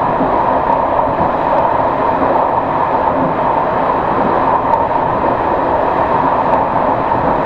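Train wheels click now and then over rail joints.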